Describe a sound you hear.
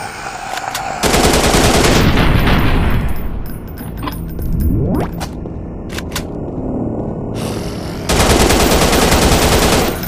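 An assault rifle fires rapid bursts of shots.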